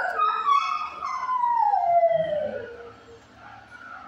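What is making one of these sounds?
A dog whines loudly, its pitch sliding downward.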